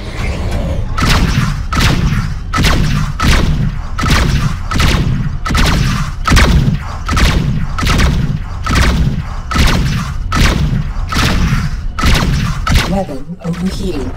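Cannons fire in rapid, repeated bursts.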